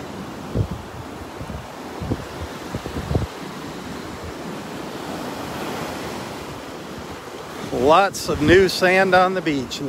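Waves wash gently onto a sandy shore.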